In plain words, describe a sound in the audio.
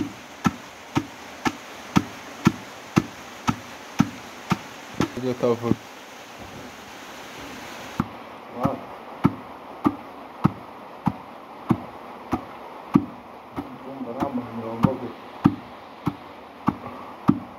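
A wooden pestle pounds beans in a stone mortar with dull, steady thuds.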